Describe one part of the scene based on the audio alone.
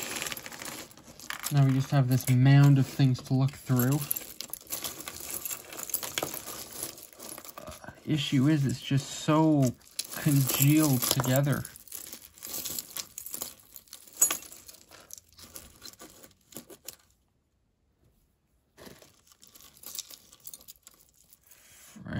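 Metal jewelry clinks and rattles as hands rummage through a pile.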